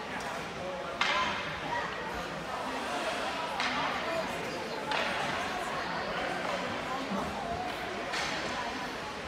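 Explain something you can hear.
Hockey sticks clack against the puck.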